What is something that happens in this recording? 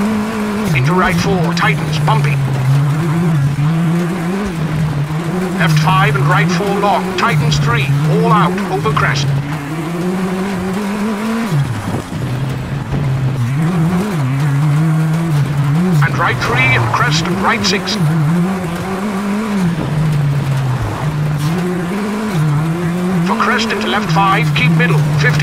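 Tyres crunch and scatter over loose gravel.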